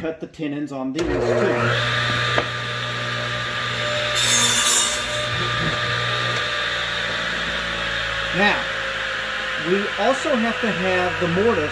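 A power saw motor hums steadily.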